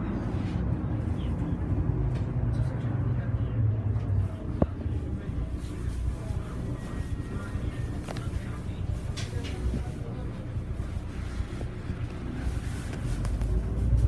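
A bus engine rumbles low and steady from inside the moving bus.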